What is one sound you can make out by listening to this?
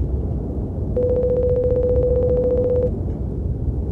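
Rapid beeps tick as dialogue text prints out.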